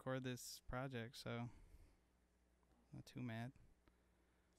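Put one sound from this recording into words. A man speaks close into a microphone in short bursts.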